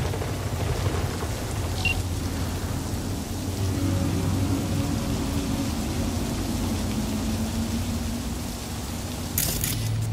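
A hovering drone hums steadily.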